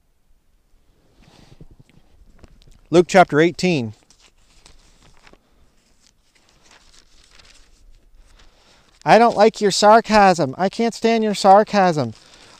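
Paper pages rustle as a man turns them.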